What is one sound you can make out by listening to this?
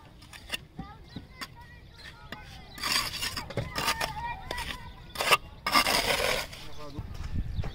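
A metal trowel scrapes and taps against bricks.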